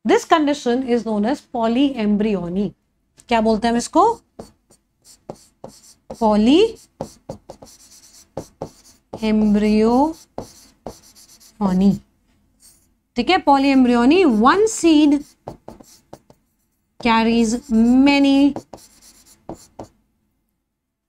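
A young woman explains through a close microphone, in a lively teaching voice.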